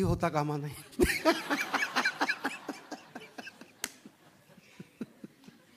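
An older man laughs into a microphone.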